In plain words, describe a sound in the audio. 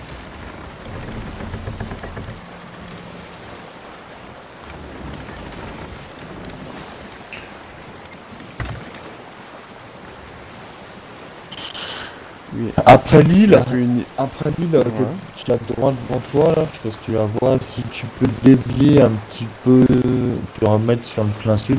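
Wind blows steadily through a ship's sails.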